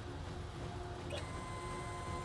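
A machine beeps as a button is pressed.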